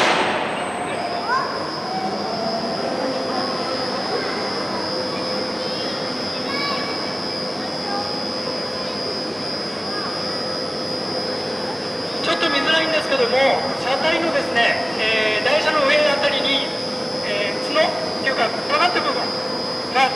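An electric train's motors whine steadily overhead as it rolls slowly past.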